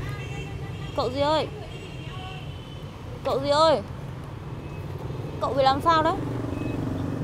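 A young woman calls out with concern, close by.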